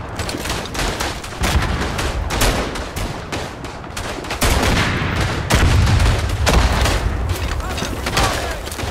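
Explosions boom and rumble repeatedly.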